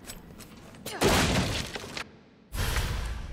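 A loud rustling whoosh sounds as an item is picked up.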